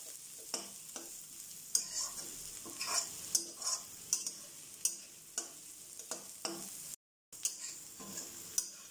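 A metal spatula scrapes and clatters against a wok while tossing food.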